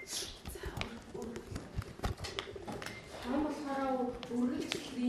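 Children chatter quietly nearby.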